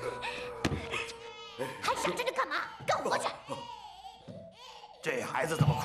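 A man shouts gruffly and angrily.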